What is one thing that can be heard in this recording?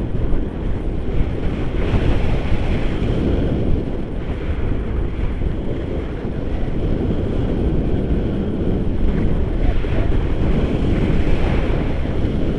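Strong wind roars and buffets against a nearby microphone.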